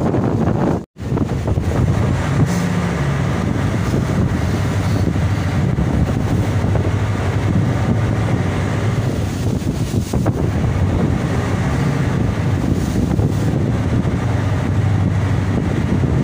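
A boat engine hums steadily and low.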